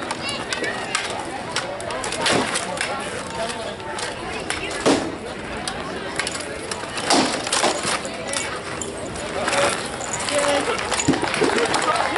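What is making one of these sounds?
Weapons clash loudly against wooden shields in sharp knocks.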